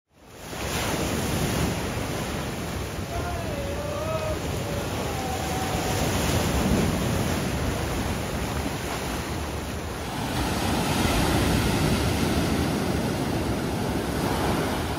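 Waves crash and splash against rocks, with the sea rushing steadily.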